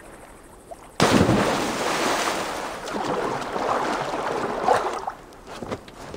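Water churns and sloshes as someone swims.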